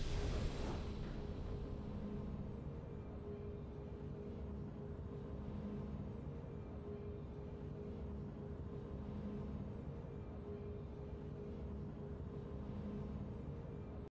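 A soft, steady game tune plays quietly.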